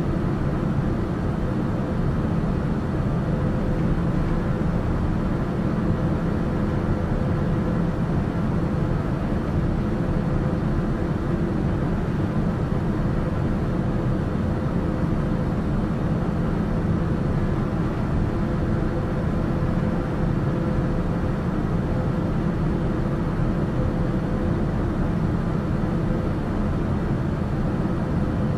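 An aircraft engine drones steadily in cruise, heard from inside the cockpit.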